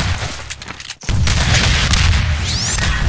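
A rocket explodes with a loud boom.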